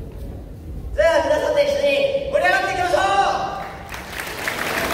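A young man talks through a loudspeaker in a large echoing hall.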